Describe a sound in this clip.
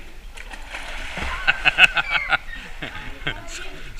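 Water splashes and laps around swimmers.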